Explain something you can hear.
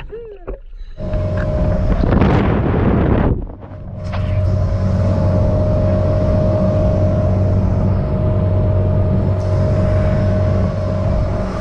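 Wind roars loudly past.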